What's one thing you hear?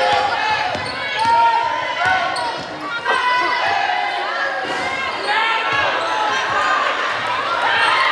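A crowd of spectators cheers and shouts loudly in an echoing gym.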